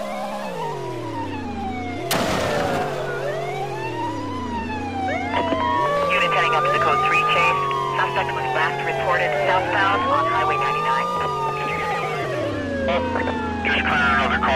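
Police sirens wail as cars give chase.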